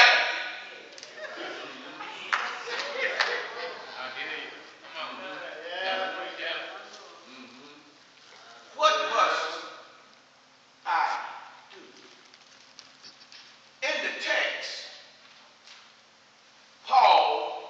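A man preaches with passion through a microphone in an echoing hall, pausing between loud phrases.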